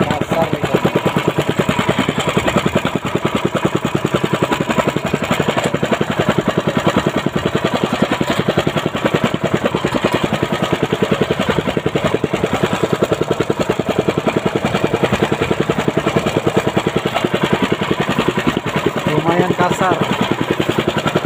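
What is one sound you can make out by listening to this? A boat engine chugs steadily and rapidly.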